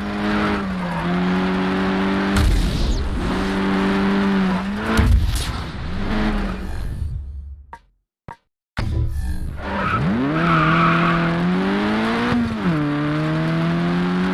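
Tyres screech as a car slides through corners.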